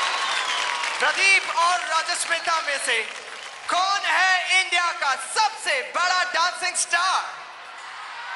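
A man speaks with animation into a microphone over loudspeakers.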